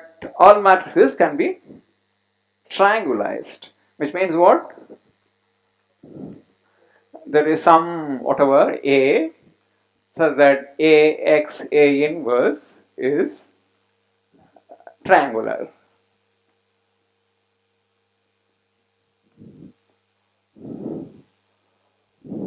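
An elderly man speaks calmly into a close microphone, pausing often.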